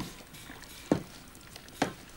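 A man jumps down and lands with a heavy thud.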